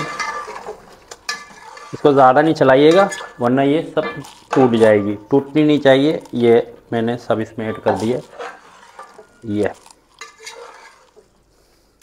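A metal spatula scrapes and stirs inside a metal pot.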